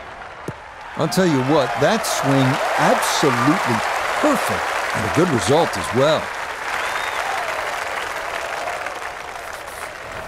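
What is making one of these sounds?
A large crowd cheers, whoops and whistles loudly outdoors.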